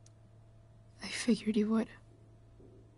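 A young woman speaks softly and sadly, close by.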